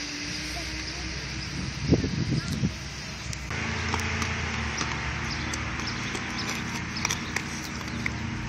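Inline skate wheels roll and scrape on asphalt.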